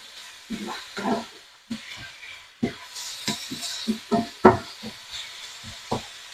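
A wooden spoon scrapes and knocks against a frying pan.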